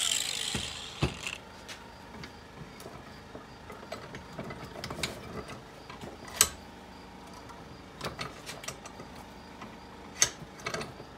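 Metal tools clink and knock against a bench vise.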